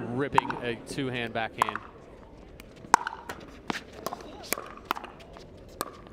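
Paddles pop against a plastic ball in a quick rally.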